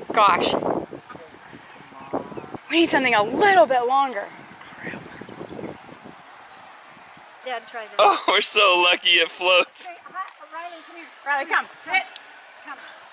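A teenage boy talks excitedly nearby.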